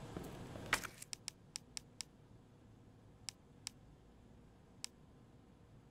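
Menu selections click softly.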